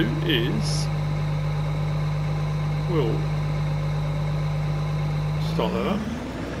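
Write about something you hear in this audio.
A combine harvester's engine hums steadily.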